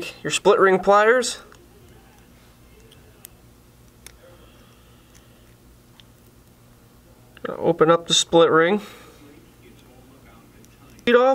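Small pliers click softly against metal wire.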